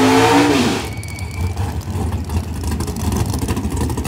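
Tyres squeal and screech as a car does a burnout.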